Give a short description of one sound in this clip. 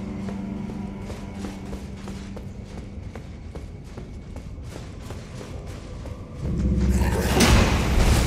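Armoured footsteps clank steadily on a stone floor.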